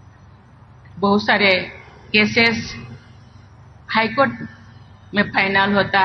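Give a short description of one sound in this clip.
An elderly woman speaks calmly into a microphone, pausing between phrases.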